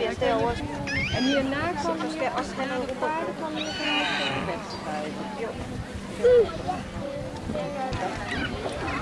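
A woman talks nearby, outdoors.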